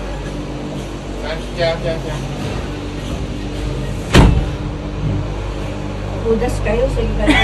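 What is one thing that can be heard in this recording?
A cable car hums and rumbles steadily as it moves.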